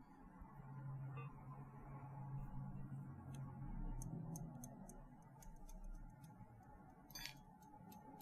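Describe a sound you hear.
Small objects tap and click in a hand close to a microphone.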